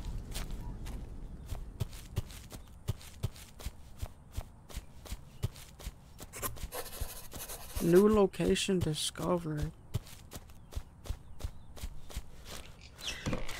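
Footsteps tread steadily through grass.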